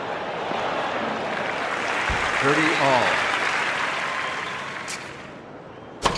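A crowd applauds and cheers, then fades.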